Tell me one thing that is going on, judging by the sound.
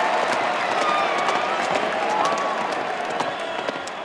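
Horse hooves clop on the ground.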